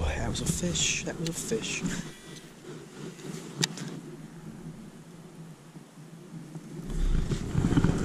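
A fishing reel clicks and whirs as it is wound in.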